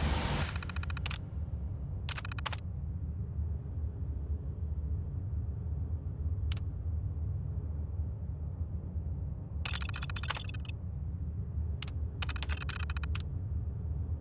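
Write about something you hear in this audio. Computer terminal keys click and beep in short bursts.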